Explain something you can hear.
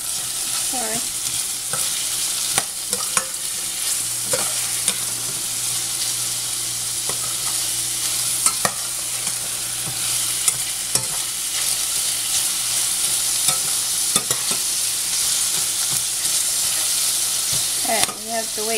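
Metal tongs clink against a metal pan.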